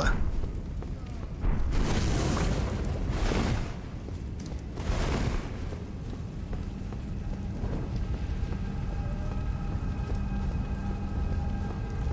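Lava rumbles low and steady.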